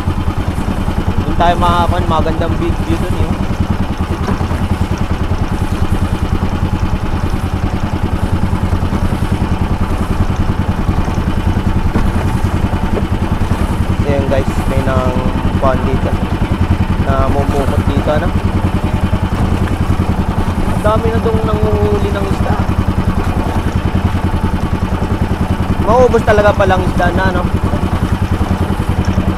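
A motorized outrigger boat's engine drones under way.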